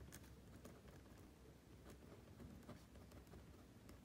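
A pen is set down on paper with a light tap.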